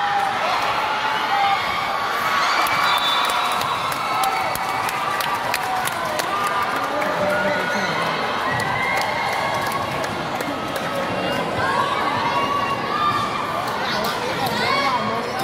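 Young women shout to each other on the court.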